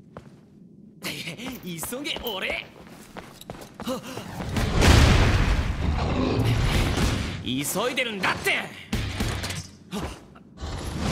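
A young man shouts with energy.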